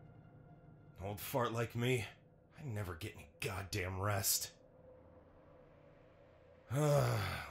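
A man speaks in a low, grumbling voice close to a microphone.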